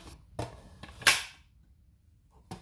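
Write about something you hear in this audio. A metal pot lid clanks shut.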